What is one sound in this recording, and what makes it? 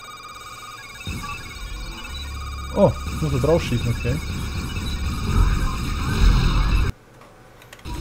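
Laser blasts and explosions crackle loudly in a game.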